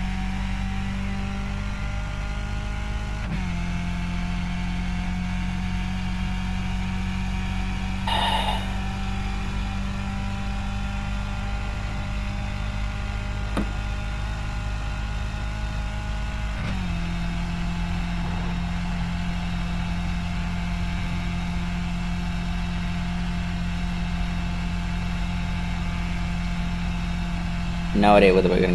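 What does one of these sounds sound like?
A racing car engine drones loudly at a high, steady pitch.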